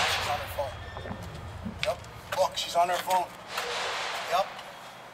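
A man speaks firmly nearby.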